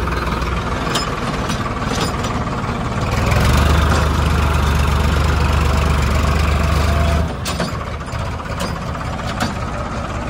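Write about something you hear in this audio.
A plough scrapes and churns through dry soil.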